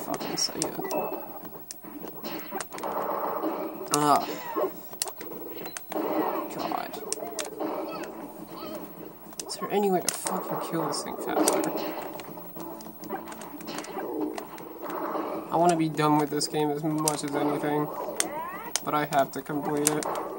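Game characters cry out and shout.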